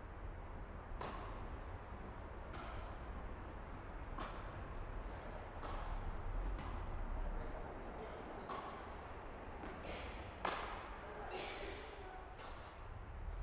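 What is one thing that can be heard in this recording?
Rackets hit a ball back and forth with sharp pops in a large echoing hall.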